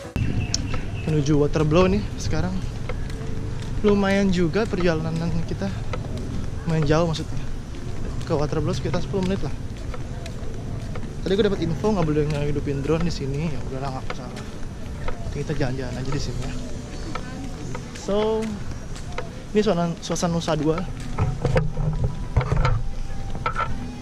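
A young man talks casually and close by, outdoors.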